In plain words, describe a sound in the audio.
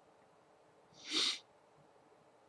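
A young man breathes out close to a microphone.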